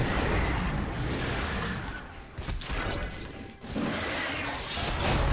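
Video game spells and weapon hits crash and crackle in a busy fight.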